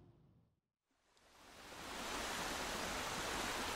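Small waves wash gently against a shore.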